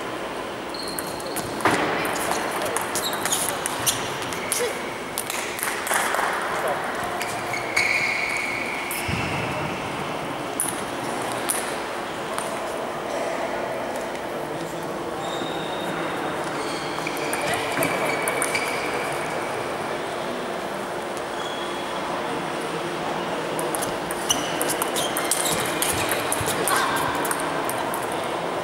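Shoes squeak on the floor.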